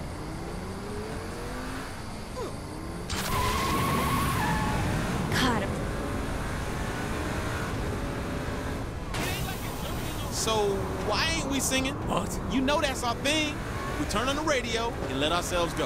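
A car engine roars under acceleration.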